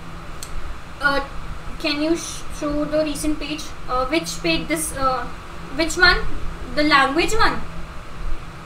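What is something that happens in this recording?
A young woman speaks calmly into a close microphone, explaining.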